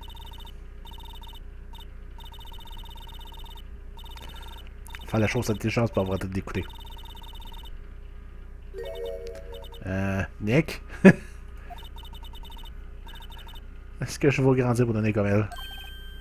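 Rapid soft beeps chirp in quick bursts.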